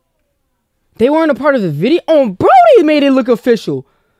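A man speaks excitedly into a handheld microphone.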